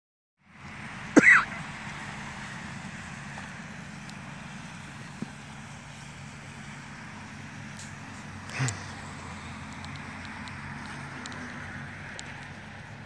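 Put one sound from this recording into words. A lawn sprinkler hisses steadily outdoors.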